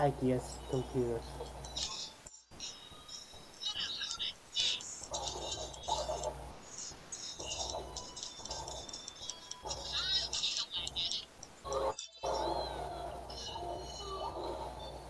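Cartoonish punches, whooshes and impact effects burst out rapidly in a fast fight.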